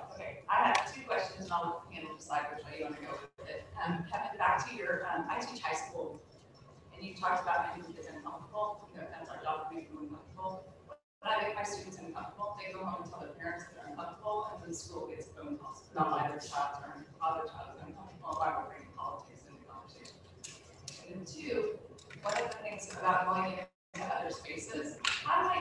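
An older woman speaks steadily into a microphone, heard over a loudspeaker.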